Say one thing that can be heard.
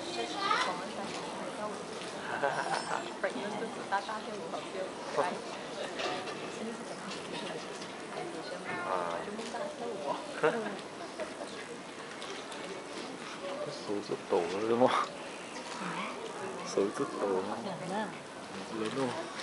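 A choir of women and men murmurs and chatters softly.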